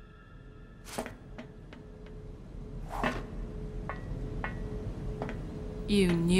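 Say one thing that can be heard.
High heels click on a metal floor.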